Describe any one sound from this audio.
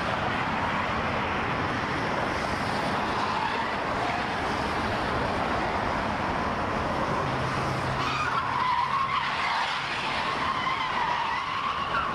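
Cars speed past on a busy highway with a steady rushing roar of tyres and engines.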